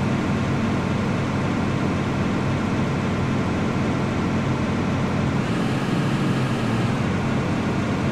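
A young man speaks quietly into a microphone.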